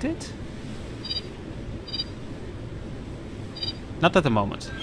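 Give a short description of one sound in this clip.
Short electronic beeps sound as panel buttons are pressed.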